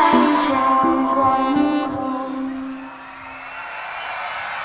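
Loud music plays through loudspeakers.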